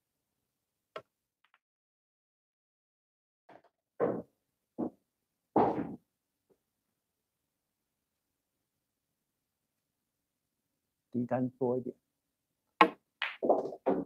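Pool balls knock together on the table.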